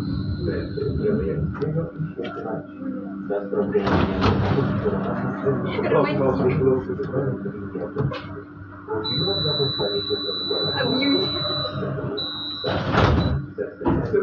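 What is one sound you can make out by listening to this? A tram's motor hums and rumbles steadily from inside the cab.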